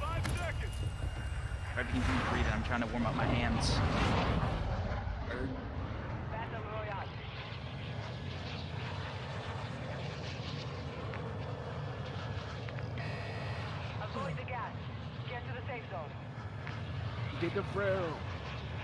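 A plane engine drones steadily.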